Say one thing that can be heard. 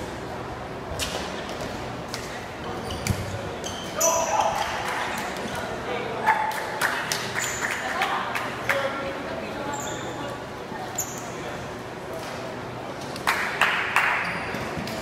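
A ball is kicked with sharp thuds that echo around a large hall.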